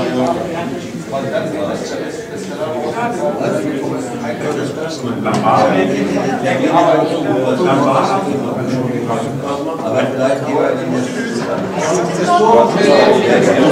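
Several adults chat quietly in the background.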